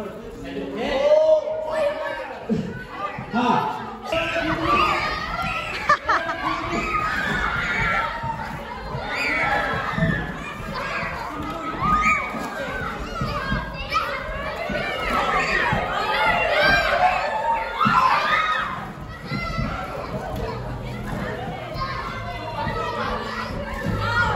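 Many children chatter and shout excitedly in a large room.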